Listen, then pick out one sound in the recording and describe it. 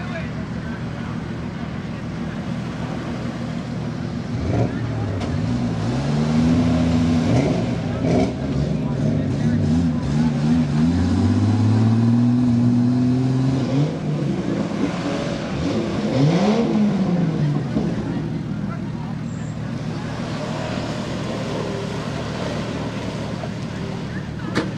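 An engine roars as a vehicle spins its wheels in deep mud.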